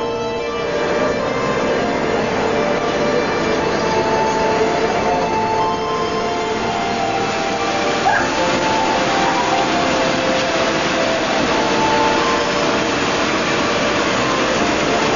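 A ship's engine drones steadily.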